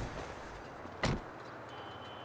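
A car door shuts with a thump.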